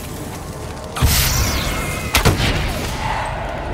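A fiery blast bursts with a loud roar.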